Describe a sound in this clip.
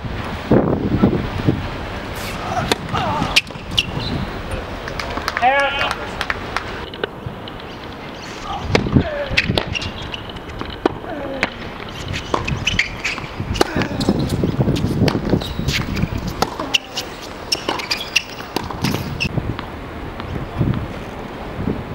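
Tennis shoes squeak and patter on a hard court.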